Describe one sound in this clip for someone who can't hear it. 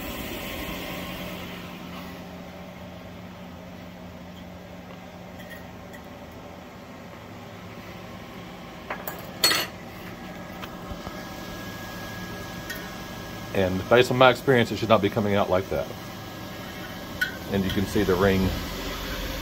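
A cotton candy machine hums as its head spins.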